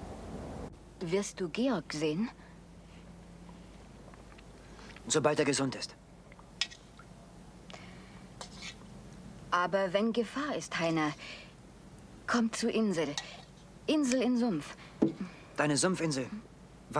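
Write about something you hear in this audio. A woman answers calmly at close range.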